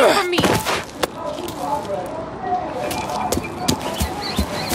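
Footsteps tap on pavement at a walking pace.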